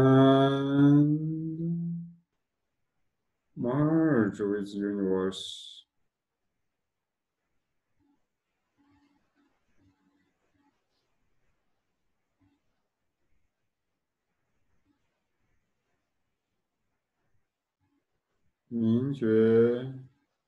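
A man chants in long, drawn-out phrases close by, with long silent pauses between them.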